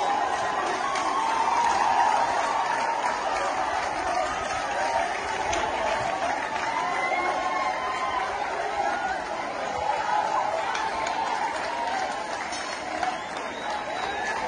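A large crowd shouts and clamours in the distance outdoors.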